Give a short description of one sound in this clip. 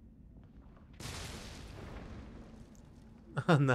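An explosion booms and rumbles, then slowly fades.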